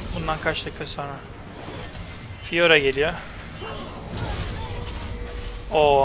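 Magic spells burst and crackle in a video game.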